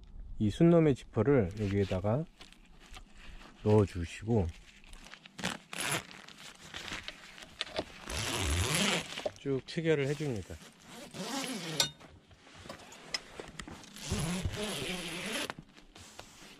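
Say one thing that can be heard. A zipper rasps as it is pulled open.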